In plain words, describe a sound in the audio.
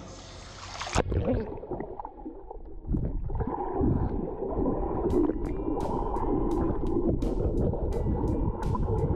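Pool water churns and gurgles, heard from under the surface.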